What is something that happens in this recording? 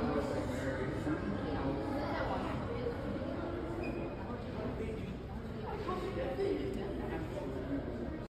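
Men and women chat in low voices in the background of a large echoing hall.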